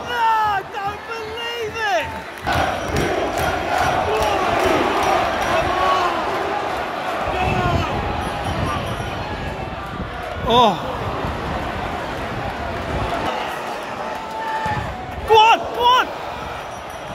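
Men in the crowd nearby shout.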